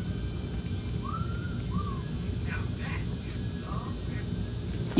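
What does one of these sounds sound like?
Small kittens mew softly.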